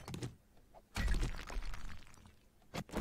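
A rock crumbles and breaks apart with a rumbling crash.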